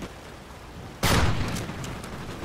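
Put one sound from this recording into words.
A rifle fires a single loud, booming shot.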